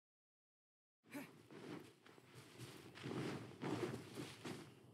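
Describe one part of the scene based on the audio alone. Footsteps run quickly over grass and rock.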